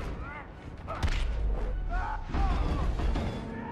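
Explosions burst loudly.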